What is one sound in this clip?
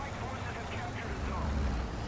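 Branches rustle and scrape against a tank.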